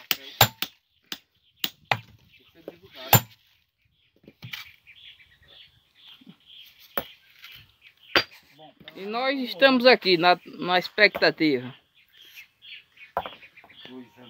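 A sledgehammer strikes stone with sharp, ringing knocks now and then.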